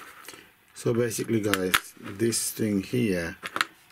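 A small plastic part clicks as it is handled.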